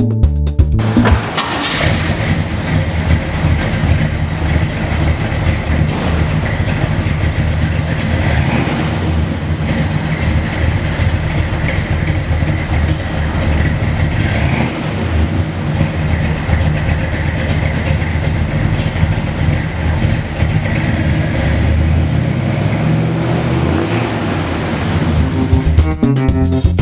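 A large car engine idles with a deep, steady, throbbing rumble.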